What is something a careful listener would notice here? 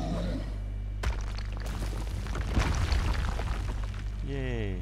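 Blows and metallic clashes ring out in a fight.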